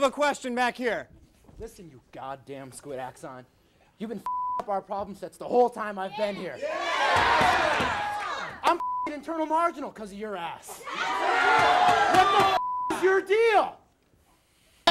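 A young man shouts excitedly into a microphone.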